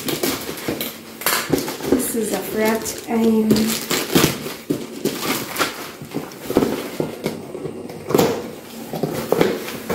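A paper bag rustles and crackles as it is torn open.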